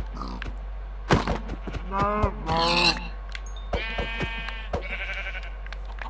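A pig squeals in pain.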